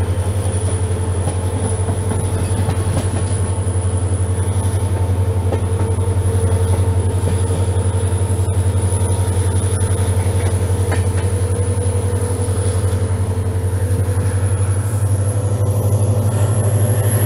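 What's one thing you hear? Train wheels rumble and clack along the rails.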